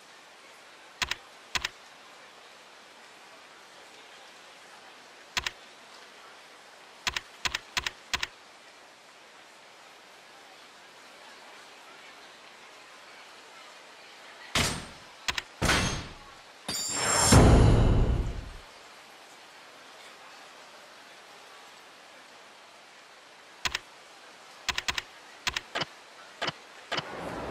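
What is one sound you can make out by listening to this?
Short menu clicks tick.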